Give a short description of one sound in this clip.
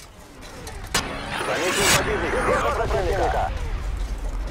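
An explosion bursts with a loud boom and a rumbling tail.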